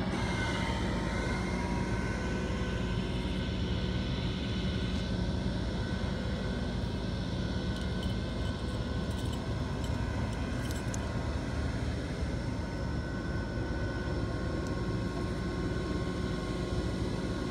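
Water laps gently against a pier.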